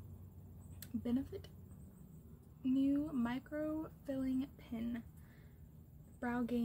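A young woman speaks calmly close to a microphone.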